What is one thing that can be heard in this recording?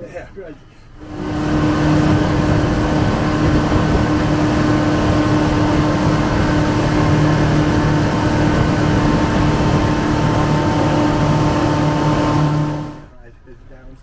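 Water rushes and splashes past a speeding boat's hull.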